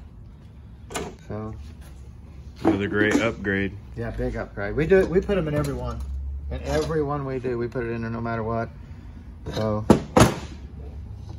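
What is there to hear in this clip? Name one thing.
Metal parts clink and knock against each other on a hard surface.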